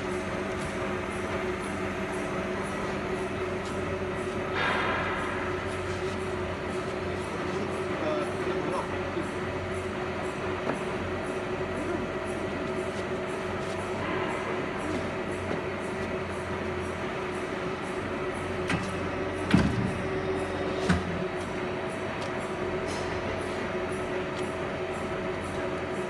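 A hydraulic die-cutting press's pump hums steadily.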